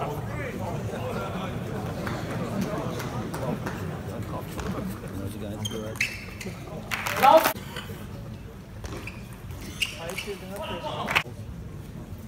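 A ping-pong ball clicks back and forth off paddles and the table.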